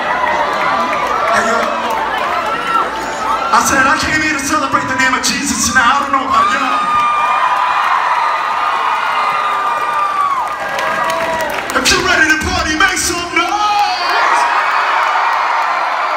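A man sings loudly through a microphone in a large echoing hall.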